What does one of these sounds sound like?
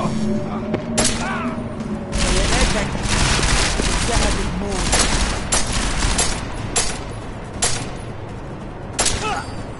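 Pistol shots crack in quick bursts.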